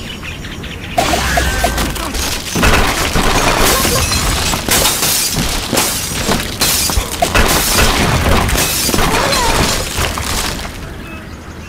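Blocks crash and clatter as a tower collapses in a game.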